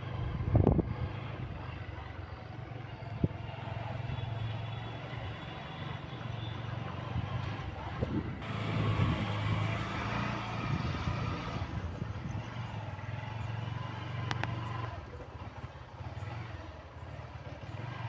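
A motorcycle engine hums as the motorcycle rides along.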